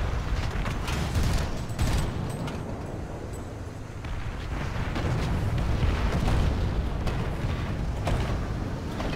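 A tank cannon fires with a sharp, loud boom.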